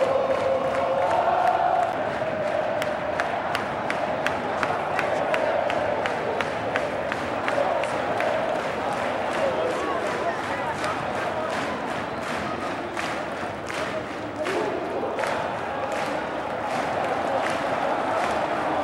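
Fans clap their hands in a steady rhythm nearby.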